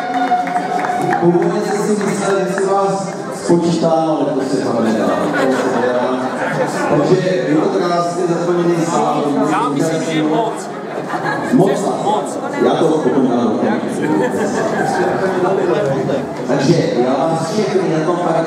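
An elderly man speaks calmly through a microphone and loudspeakers.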